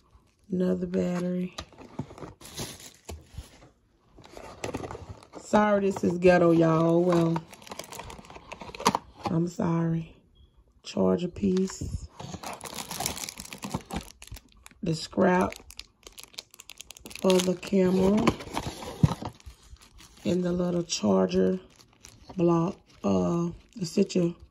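Cardboard and paper rustle and scrape as a box is handled.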